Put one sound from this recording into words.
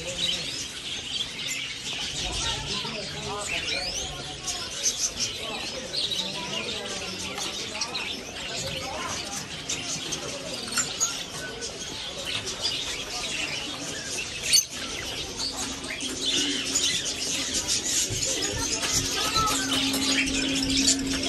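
Many small caged birds chirp and twitter.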